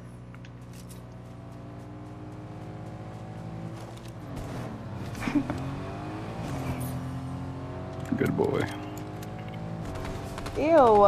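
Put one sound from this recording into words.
A vehicle engine hums and revs as it drives off.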